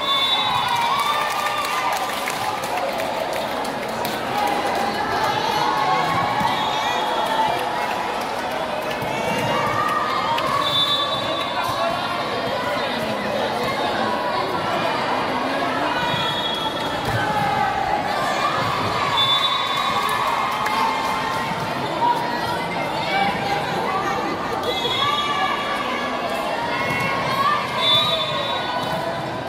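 A large crowd cheers and chants in a large echoing hall.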